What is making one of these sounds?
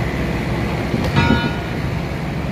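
A heavy wooden slab thuds down onto a metal table with a ringing clang.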